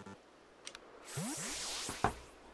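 A sparkling video game effect whooshes and chimes.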